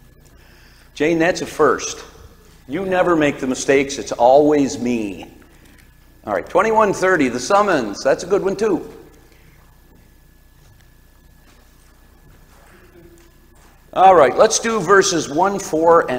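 A man speaks calmly through a microphone in a large echoing room.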